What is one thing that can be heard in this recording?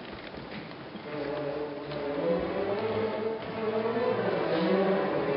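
An orchestra starts playing a lively tune in a large echoing hall.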